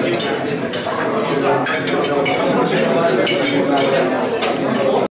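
Cutlery and plates clink.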